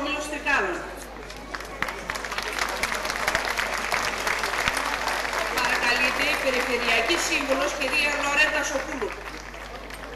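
An audience applauds loudly, then the clapping dies away.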